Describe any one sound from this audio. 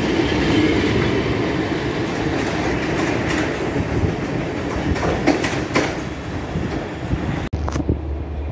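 A train rumbles past close by, its wheels clacking over the rail joints.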